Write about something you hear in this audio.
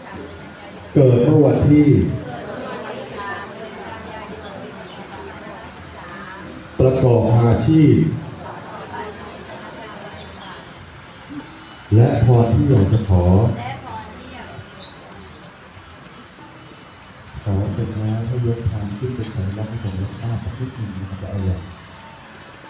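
A crowd of men and women chant together in unison, in short loud bursts.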